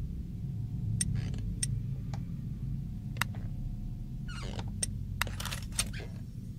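Small clicks and chimes sound as puzzle pieces turn.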